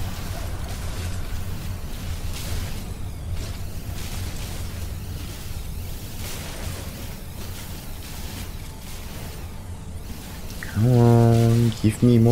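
Rock chunks crack and break apart.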